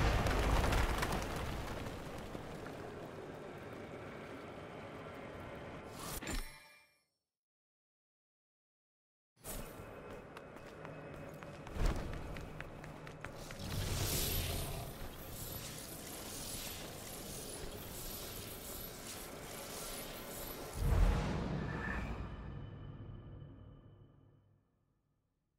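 Stone rubble bursts apart with a heavy crashing rumble.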